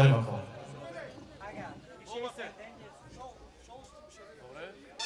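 Young men talk nearby in lively voices.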